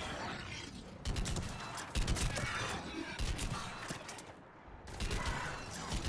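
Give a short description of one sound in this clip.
A rifle fires sharp shots in a game.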